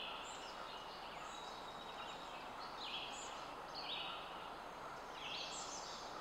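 Deer rustle through ferns.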